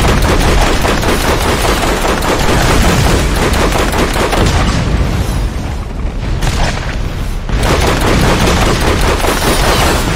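A vehicle engine roars steadily.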